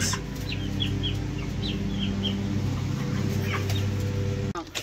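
Chicks peep softly.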